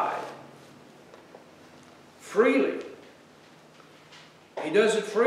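An elderly man speaks slowly and deliberately into a microphone in a room with slight echo.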